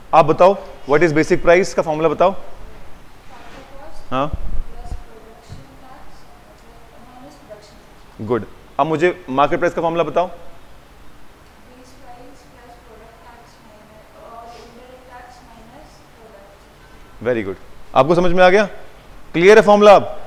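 A man lectures through a clip-on microphone, speaking with animation in bursts and pauses.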